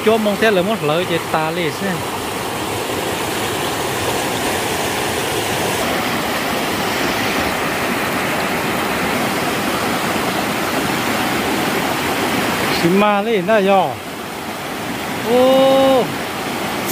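A mountain stream rushes and splashes over rocks.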